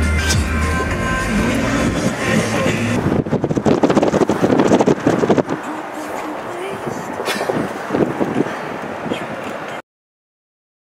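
Wind rushes and buffets loudly around an open car.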